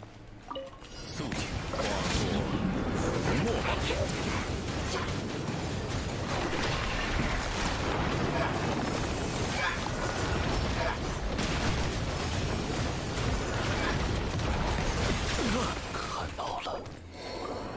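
Loud magical blasts and crackling bursts rumble in a game battle.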